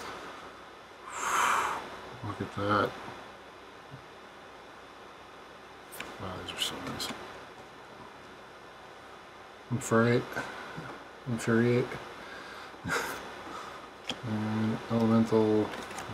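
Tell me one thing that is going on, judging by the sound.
Trading cards slide and rustle against each other in hands.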